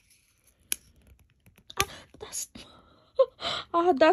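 A small plastic tag snaps off a ring.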